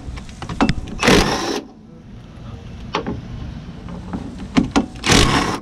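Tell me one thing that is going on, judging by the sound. An impact wrench rattles in short loud bursts.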